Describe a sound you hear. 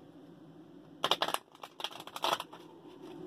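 Playing cards shuffle and slap together.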